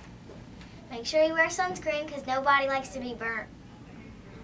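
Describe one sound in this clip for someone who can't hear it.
A young girl speaks close to the microphone.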